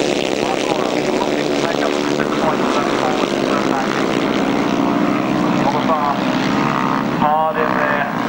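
Motorcycle engines roar loudly as they race past.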